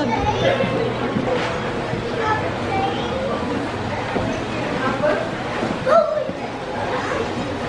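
A young child chatters excitedly nearby.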